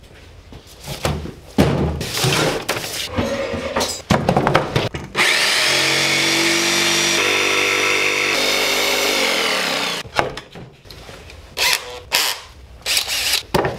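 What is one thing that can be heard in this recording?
Tools knock and clatter on a wooden bench.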